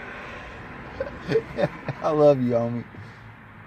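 A man speaks close by in a relaxed, amused tone.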